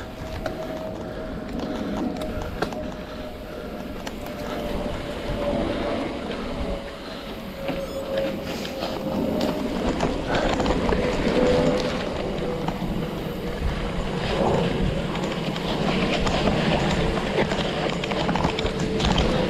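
Mountain bike tyres roll and crunch over a dry dirt trail.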